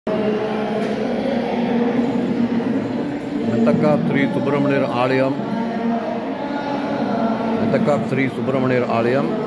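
A crowd of men and women murmur and chatter nearby.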